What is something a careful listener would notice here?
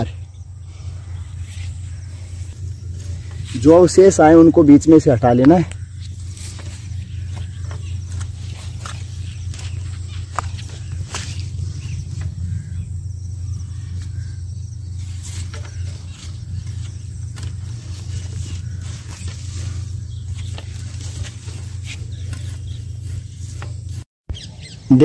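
A metal hoe scrapes and scuffs through loose soil.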